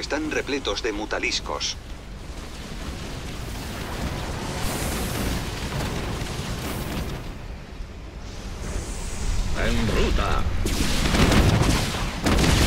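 Weapons fire and blasts rumble in a noisy battle.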